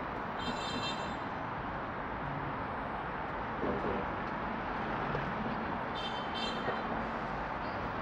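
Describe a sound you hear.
Scooters pass by on the road.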